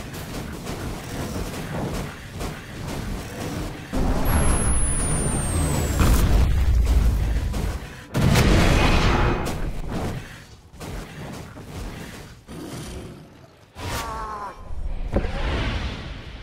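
Game creatures clash with sharp hits.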